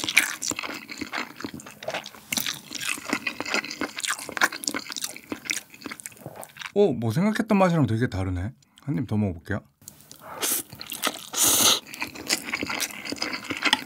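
A young man chews and smacks his lips close to a microphone.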